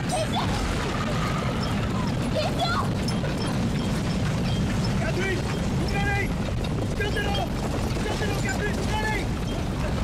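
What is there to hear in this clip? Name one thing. A horse-drawn carriage rattles along at speed.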